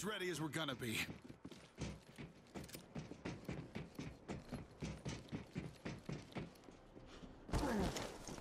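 Footsteps clang quickly on a metal walkway.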